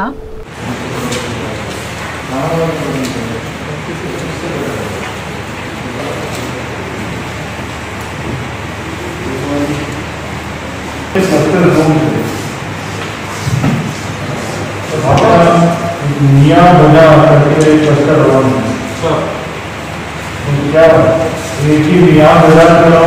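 A man speaks over a microphone in a large room.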